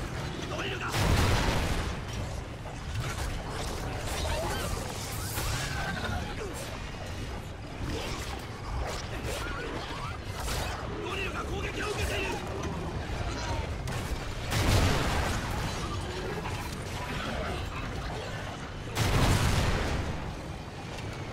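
Heavy explosions boom loudly several times.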